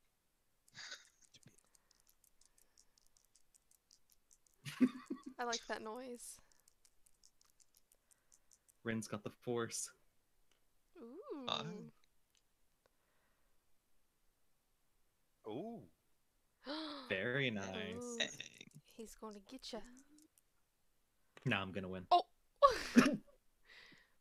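A woman laughs into a close microphone.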